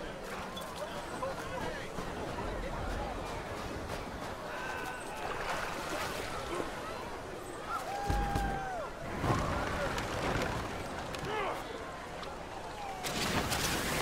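Waves wash steadily against a shore.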